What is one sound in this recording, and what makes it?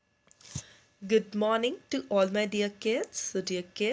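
A young woman speaks calmly and warmly, close to the microphone.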